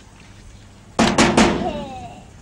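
A boy knocks on a wooden door.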